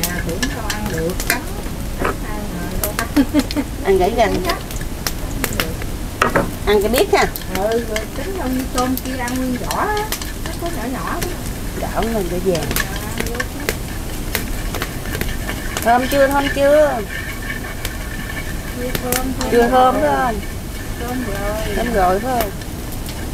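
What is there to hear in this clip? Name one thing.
A spatula scrapes and clinks against a wok.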